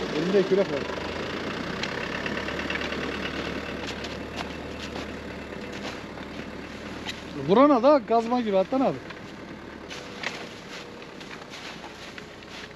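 A shovel scrapes and chops at packed snow.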